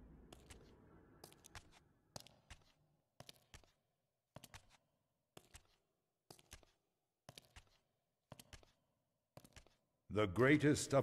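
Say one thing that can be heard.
Footsteps echo along a stone passage.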